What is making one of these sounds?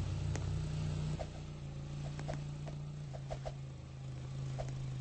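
Light footsteps tap on brick.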